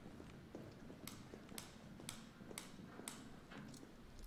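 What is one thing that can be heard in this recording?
Footsteps tap on hard stairs.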